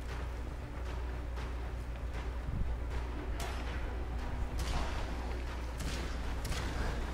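A blade whooshes through the air again and again.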